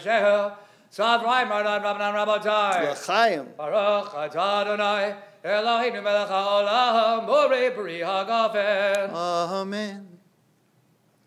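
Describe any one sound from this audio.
A man chants in a melodic singing voice through a microphone in a resonant room.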